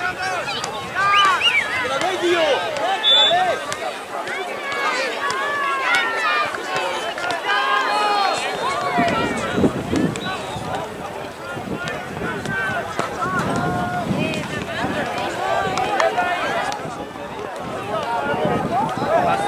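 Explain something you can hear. Young players call out and shout across an outdoor field.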